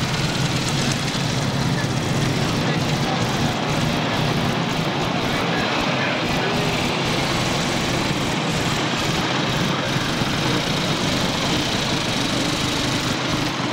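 A small car engine putters past.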